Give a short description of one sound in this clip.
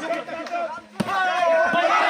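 A ball thuds as a player kicks it.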